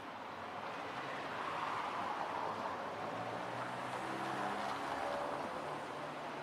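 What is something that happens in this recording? A car drives by on a street, its engine humming.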